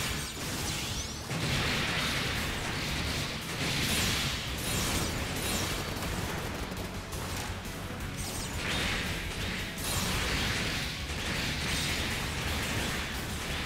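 Beam sabers clash and slash with sharp hissing strikes.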